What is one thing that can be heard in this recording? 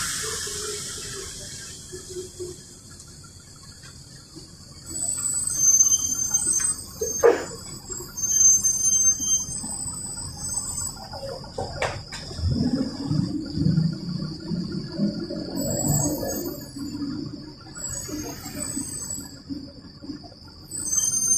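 A train rumbles steadily along its tracks.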